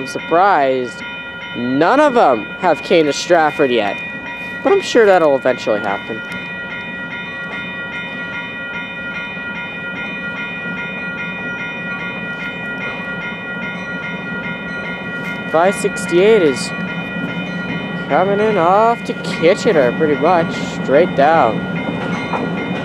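A train horn blows loud, repeated blasts close by.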